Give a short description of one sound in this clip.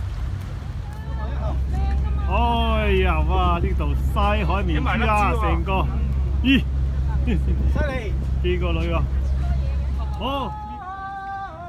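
A man talks cheerfully close by.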